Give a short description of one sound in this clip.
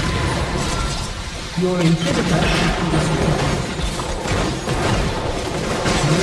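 Video game spells whoosh and crackle during a battle.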